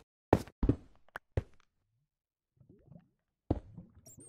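A pickaxe chips at stone in short knocks.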